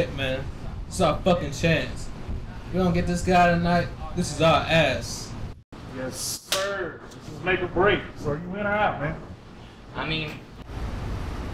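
A man speaks forcefully nearby.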